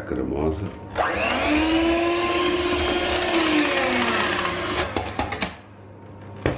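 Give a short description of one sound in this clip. An electric hand mixer whirs loudly in a pot.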